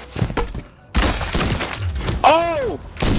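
A sniper rifle fires a sharp, loud shot.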